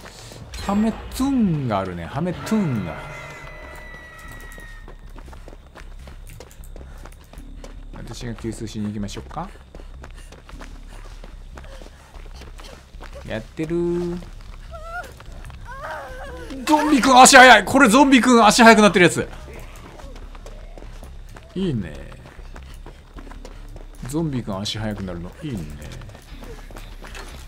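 Footsteps run over dry ground and through rustling cornstalks.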